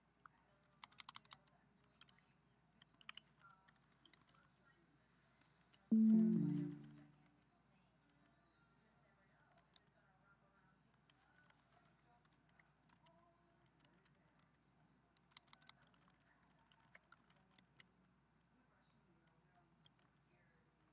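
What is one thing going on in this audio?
Computer keys click in quick bursts as someone types.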